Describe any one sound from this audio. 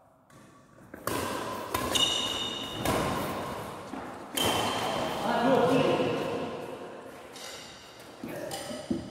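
Rackets smack a shuttlecock back and forth in an echoing hall.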